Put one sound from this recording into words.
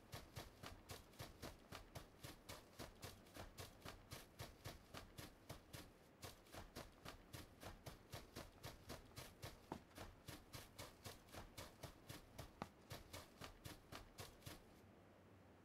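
Footsteps rustle quickly and steadily through dry grass.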